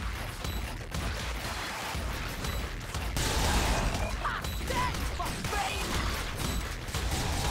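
Rapid gunfire and explosions from a video game rattle on steadily.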